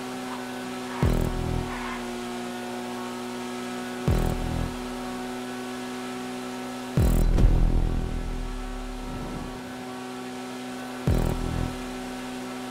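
A motorcycle engine drones steadily at high revs.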